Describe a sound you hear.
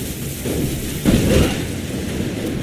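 A body splashes into a pool of water.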